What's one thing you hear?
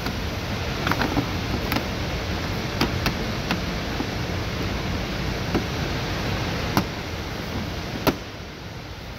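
Plastic trim clips click and snap as a panel is pried loose.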